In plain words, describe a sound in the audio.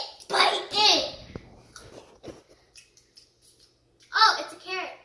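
A young girl speaks excitedly close by.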